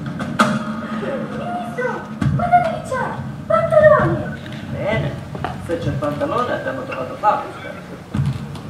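A man speaks with feeling on a stage that echoes.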